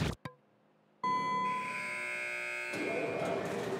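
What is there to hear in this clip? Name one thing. A buzzer sounds with a steady tone.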